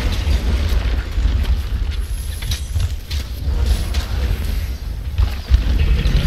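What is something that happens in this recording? Fiery blasts burst with sharp impacts.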